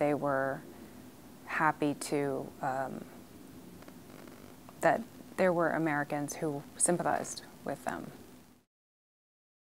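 A woman speaks calmly and thoughtfully into a close microphone.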